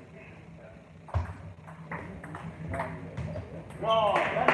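A table tennis ball clicks back and forth between paddles and the table in a large echoing hall.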